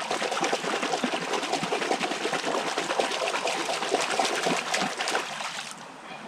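Water splashes loudly in a shallow stream.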